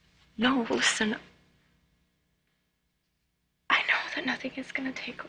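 A young woman speaks quietly and tensely, close by.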